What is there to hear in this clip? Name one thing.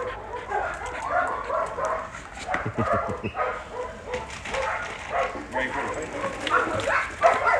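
Dogs bark and yelp excitedly close by.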